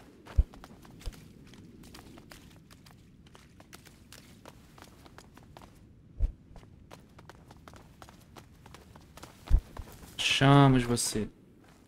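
Footsteps scuff softly on stone.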